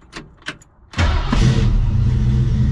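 A car engine cranks and starts with a roar.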